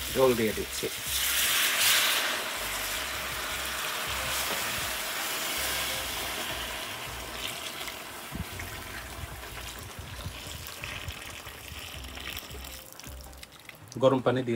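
Water pours steadily into a large metal pot.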